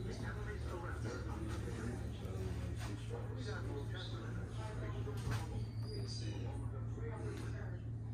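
Footsteps tap on a wooden floor indoors.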